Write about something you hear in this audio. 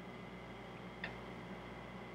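A playing card snaps softly as a hand picks it up from a table.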